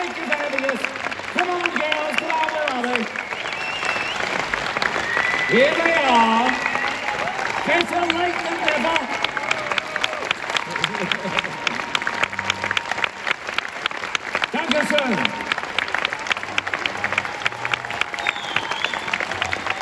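A large audience claps loudly.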